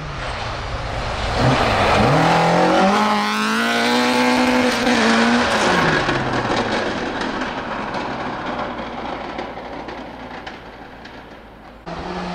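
A second rally car engine screams past close by and fades into the distance.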